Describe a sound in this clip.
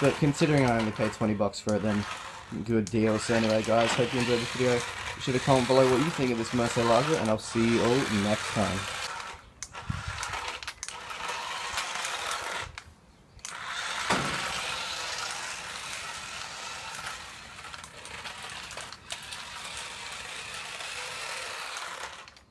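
A small electric motor whirs as a toy car speeds over concrete.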